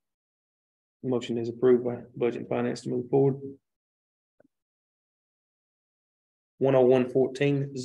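A man speaks calmly through a microphone in a quiet room.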